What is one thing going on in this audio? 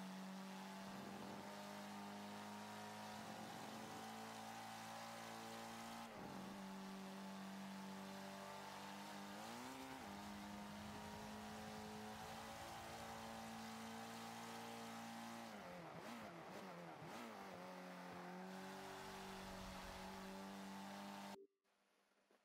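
A car engine revs high and shifts gears as it races.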